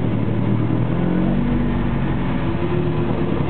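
A race car engine revs up and changes pitch.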